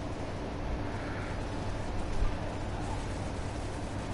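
Heavy explosions boom and rumble.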